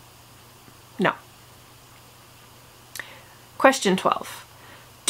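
A young woman speaks calmly and close to a microphone, in short bursts.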